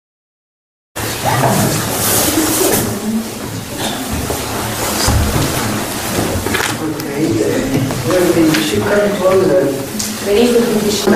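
A group of men and women chat in a room.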